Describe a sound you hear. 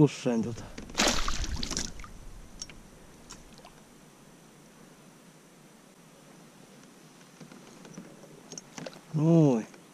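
A fish splashes and thrashes in water close by.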